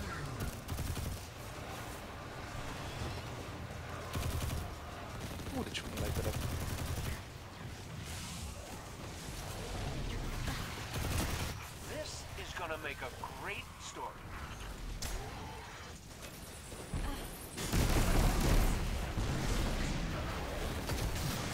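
Gunfire and explosions boom from a video game.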